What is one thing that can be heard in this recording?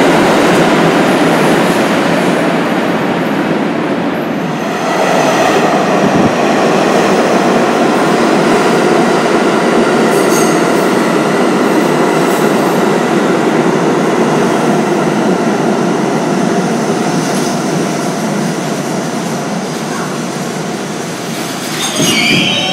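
Train wheels screech on the rails.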